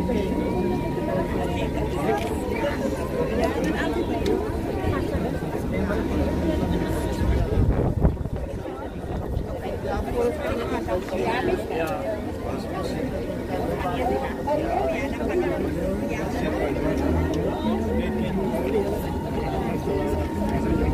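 A crowd of men and women murmurs and talks nearby outdoors.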